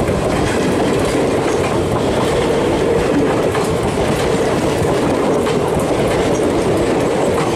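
A passenger train rumbles past close by, wheels clattering steadily on the rails.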